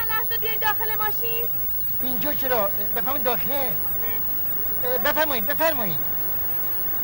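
A woman wails and cries out loudly in distress.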